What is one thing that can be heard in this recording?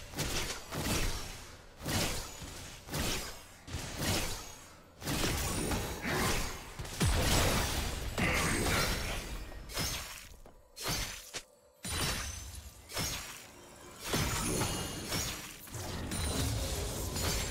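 Magic blasts and hits crackle and clash in a video game battle.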